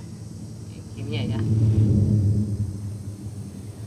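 A bus rumbles past close by.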